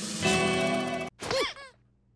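A thumb piano plays a short run of bright plucked notes.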